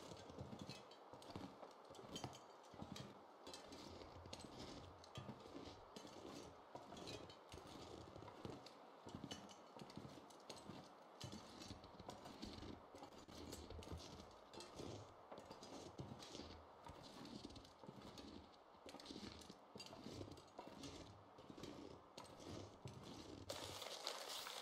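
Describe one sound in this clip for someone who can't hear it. Footsteps crunch steadily through deep snow.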